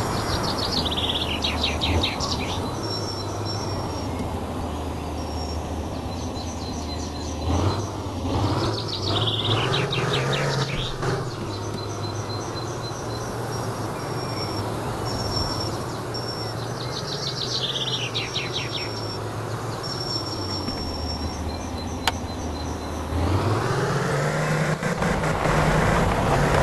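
A heavy six-wheel off-road truck engine drones as the truck drives.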